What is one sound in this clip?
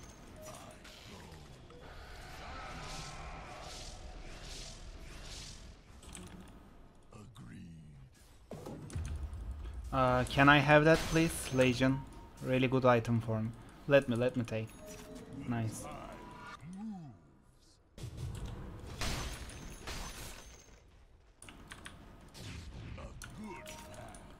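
Game spells and hits clash with bursts of effects.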